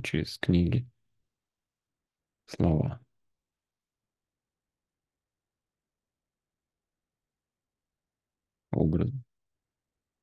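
A man speaks briefly in short bursts over an online call.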